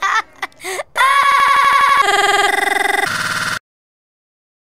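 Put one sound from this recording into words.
A young boy laughs loudly and with glee.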